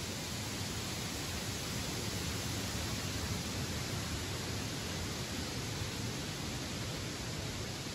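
Wind blows steadily through the treetops, rustling the leaves.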